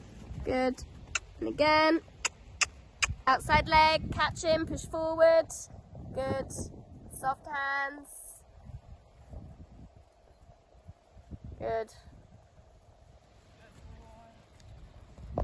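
A horse trots on soft grass with dull hoofbeats.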